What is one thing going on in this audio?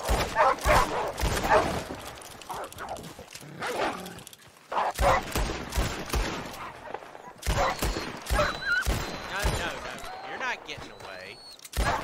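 Wolves snarl and yelp close by.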